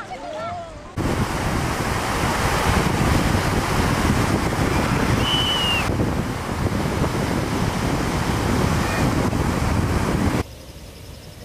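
Waves surge and break with a steady rushing roar.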